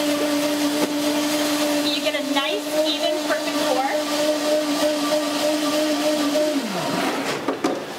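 A blender whirs steadily, then winds down.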